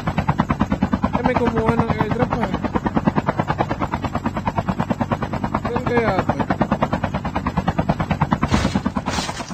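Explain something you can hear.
A helicopter's rotor thumps rapidly and steadily.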